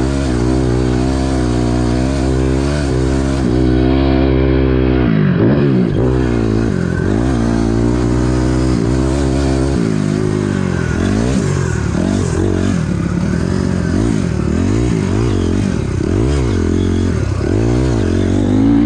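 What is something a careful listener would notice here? A dirt bike engine revs loudly up and down close by.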